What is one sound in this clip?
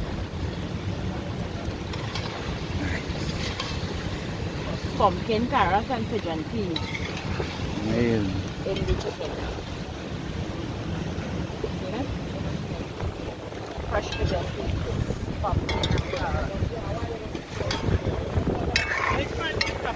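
A metal spoon stirs and scrapes through a thick stew in a pot.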